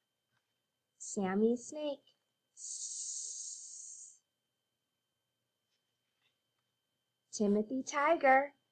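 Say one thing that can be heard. A woman speaks clearly and slowly into a microphone, as if teaching.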